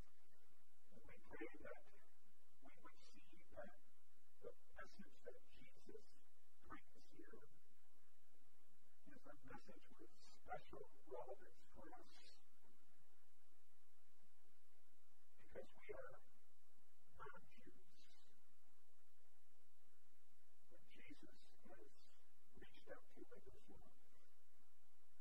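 A middle-aged man speaks calmly through a microphone in a large echoing hall, pausing between phrases.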